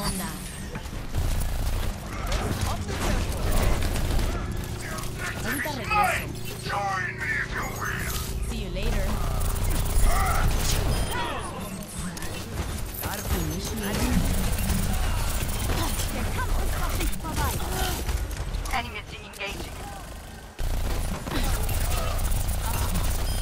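Rapid gunfire bursts from an energy weapon.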